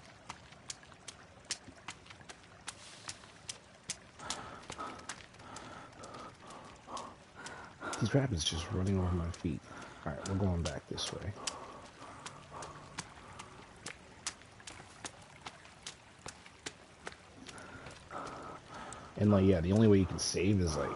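Footsteps swish through tall grass at a steady walking pace.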